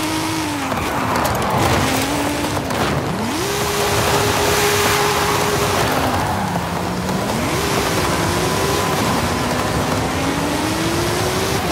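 Tyres screech while the car slides through bends.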